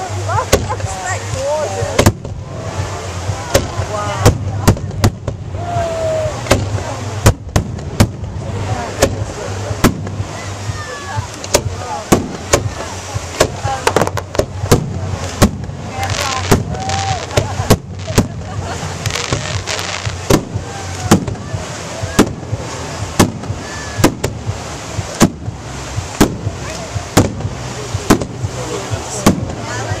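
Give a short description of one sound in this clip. Aerial firework shells burst outdoors with sharp booms.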